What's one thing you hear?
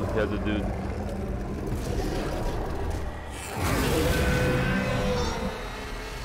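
A creature growls and snarls.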